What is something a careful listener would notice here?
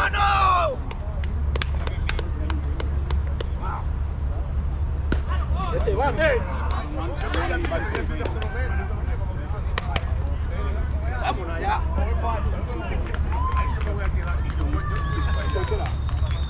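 Players slap hands together in high-fives.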